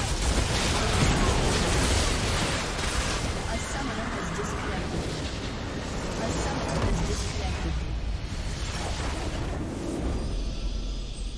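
Game spell effects and explosions crash and boom in rapid succession.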